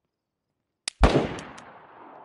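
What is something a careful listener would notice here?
A rifle rattles as it is raised.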